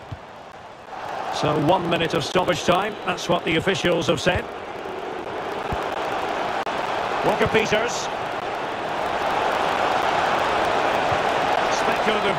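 A large stadium crowd roars and murmurs.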